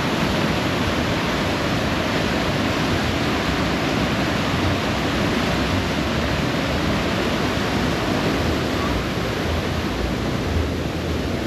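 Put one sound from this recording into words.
River water rushes and churns loudly over a weir.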